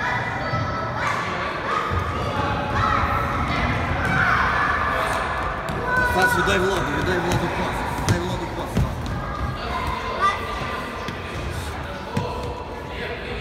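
Young children shout and chatter in an echoing hall.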